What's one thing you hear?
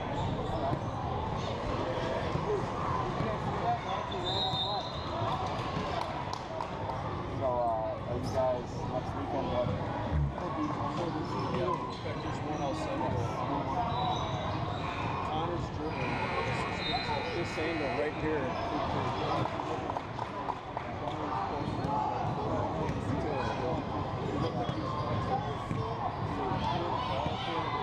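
A crowd of spectators chatters throughout in a large echoing hall.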